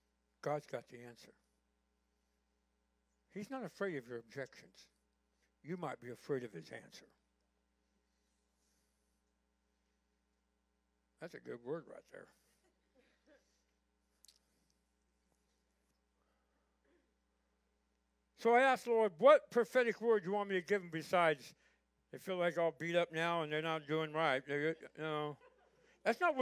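An elderly man speaks calmly through a microphone in a large room, pausing often.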